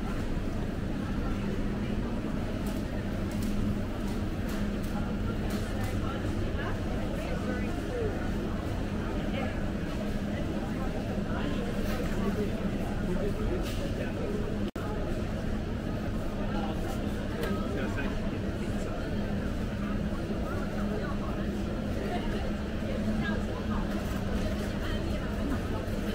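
A crowd of shoppers murmurs and chatters in a large echoing hall.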